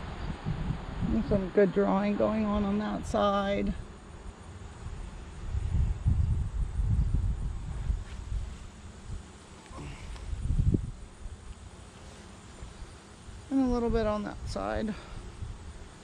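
A person speaks calmly close by.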